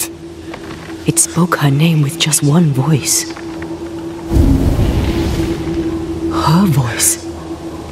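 A young woman speaks quietly and tensely.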